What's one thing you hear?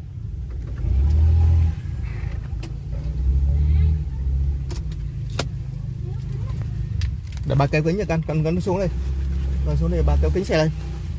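A car engine idles with a low rumble, heard from inside the car.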